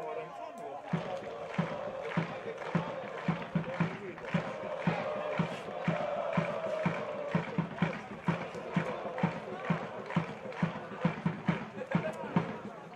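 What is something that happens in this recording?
A crowd of fans chants in the distance.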